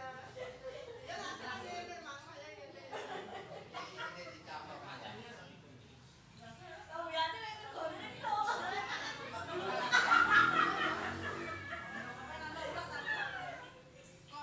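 A group of women and men chat and laugh together nearby.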